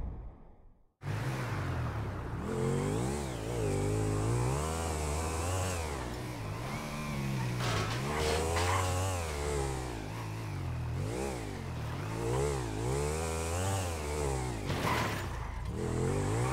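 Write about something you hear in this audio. A motorcycle engine revs up and down as the bike speeds along.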